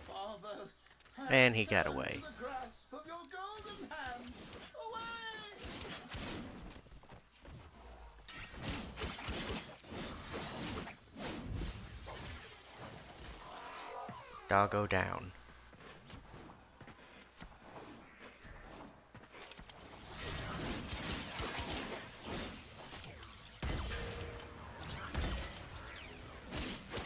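Weapons swing and strike with sharp impacts in quick bursts.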